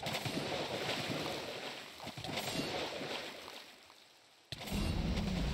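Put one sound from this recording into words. A sword strikes a creature with sharp, crunching hits.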